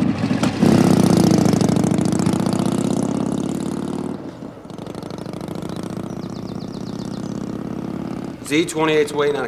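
A motorcycle rides away and fades into the distance.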